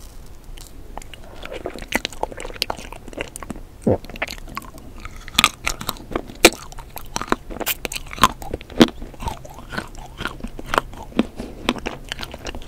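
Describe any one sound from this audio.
A young woman eats with soft, wet, sticky mouth sounds close to a microphone.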